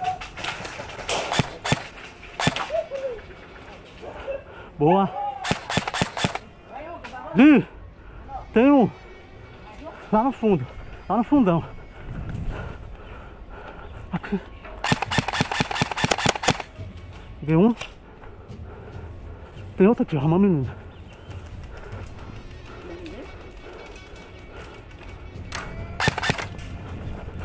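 A toy gun fires rapid bursts of sharp clicks up close.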